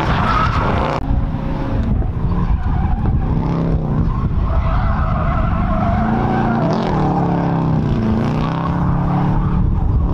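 A car engine roars loudly, rising and falling in pitch as the car speeds by and shifts gears.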